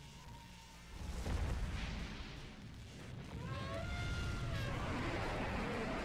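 A huge monster growls with a deep, loud rumble.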